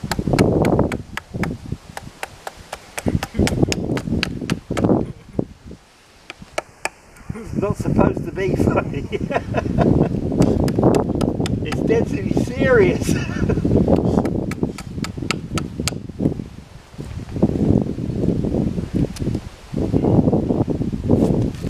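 An axe chops and shaves wood with quick, repeated knocks.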